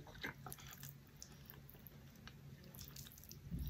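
Chopsticks click against a plate of noodles.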